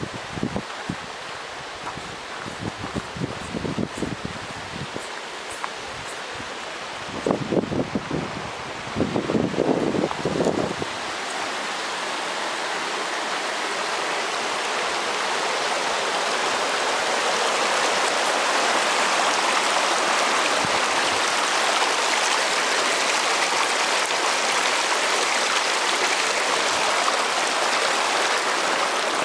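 A stream rushes over rocks, growing louder and closer.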